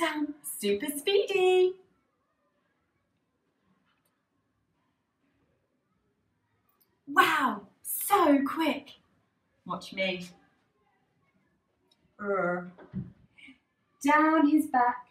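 A young woman speaks clearly and with animation, close to a microphone.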